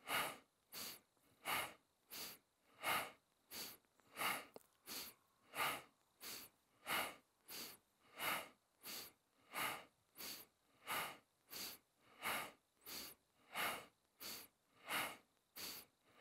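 A man breathes rapidly and forcefully in and out through the nose.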